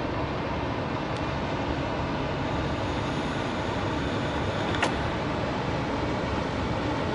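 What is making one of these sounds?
Wind blows hard into the microphone outdoors.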